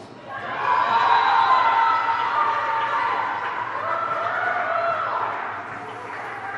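Young women shout and cheer together in a large echoing hall.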